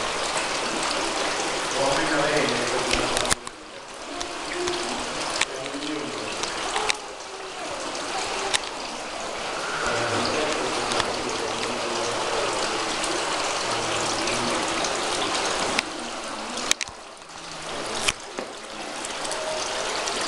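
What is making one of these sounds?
Water trickles and splashes steadily from spouts into a stone trough, echoing under a vaulted hall.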